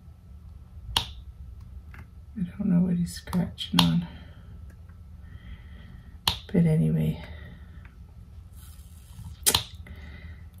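A small plastic tool clicks sharply now and then.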